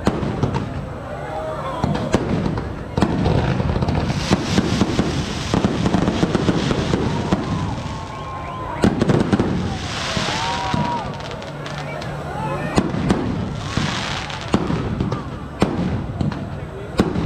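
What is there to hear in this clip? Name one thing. Rockets whistle as they shoot upward.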